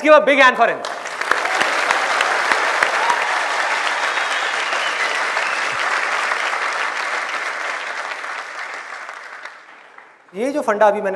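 A large audience laughs and applauds.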